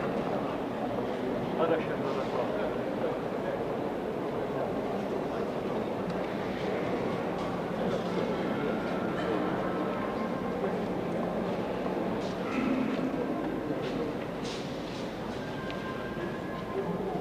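A large mixed choir sings in a reverberant hall.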